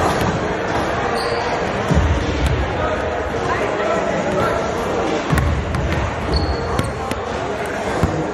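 A basketball bounces on a hard floor in a large echoing gym.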